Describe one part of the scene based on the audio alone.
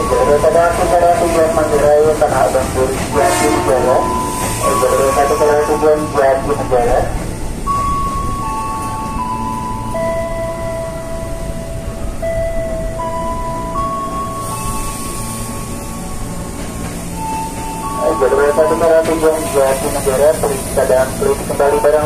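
An electric train rolls slowly along the platform with a low rumble.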